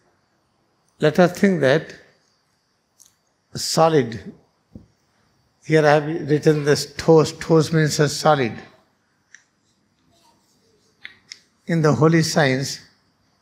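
A man speaks calmly into a microphone, lecturing in short phrases.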